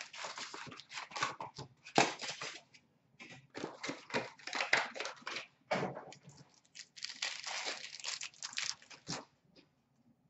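A foil card wrapper crinkles and tears.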